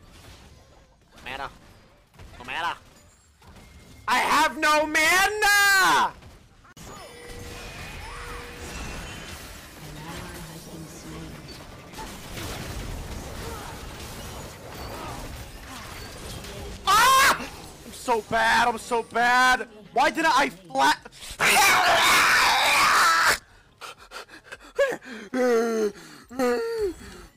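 A young man shouts with animation into a close microphone.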